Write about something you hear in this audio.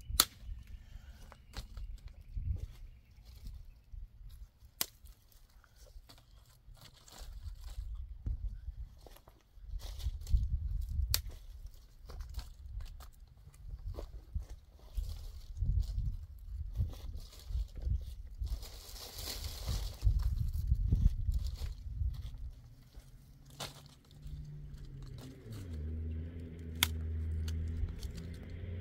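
Dry twigs snap and crackle.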